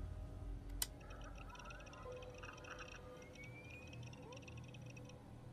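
A wrist-mounted computer beeps and chirps as it starts up.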